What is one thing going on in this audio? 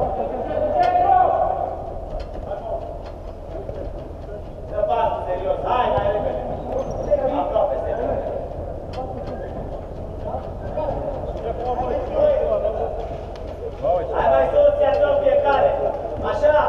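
Men shout to each other while playing, echoing in a large dome.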